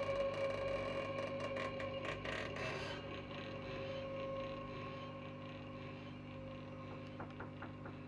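A keyboard plays sustained notes.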